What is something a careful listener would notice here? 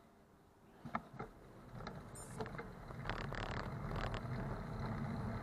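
Tyres roll over a paved street.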